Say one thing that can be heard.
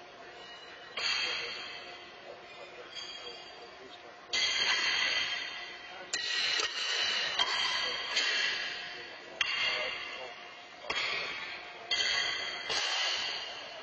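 Steel horseshoes clang against metal stakes and ring out in a large echoing hall.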